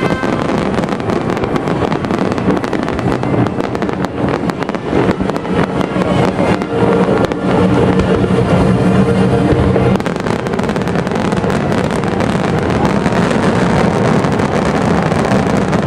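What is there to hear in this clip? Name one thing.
Fireworks bang and crackle loudly outdoors.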